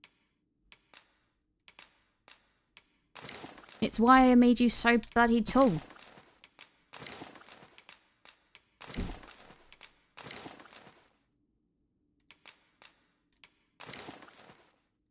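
Short menu clicks and chimes sound again and again.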